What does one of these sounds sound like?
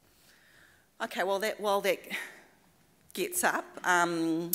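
A woman speaks clearly into a microphone.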